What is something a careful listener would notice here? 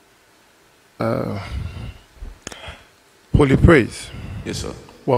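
A man speaks with animation through a microphone in a large echoing hall.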